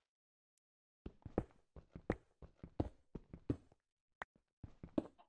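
A pickaxe taps and chips at stone in quick repeated strikes.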